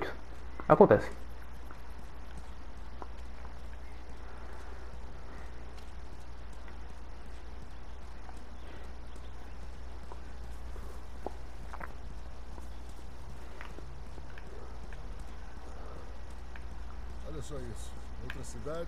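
Footsteps walk steadily over pavement and grass.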